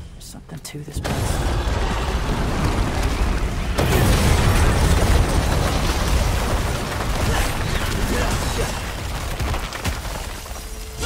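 Heavy debris crashes and rumbles loudly.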